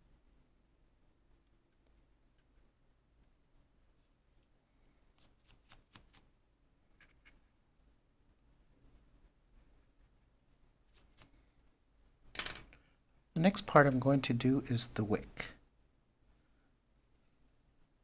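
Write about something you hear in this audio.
A paintbrush brushes softly across a wooden board.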